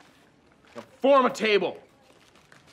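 A young man exclaims loudly.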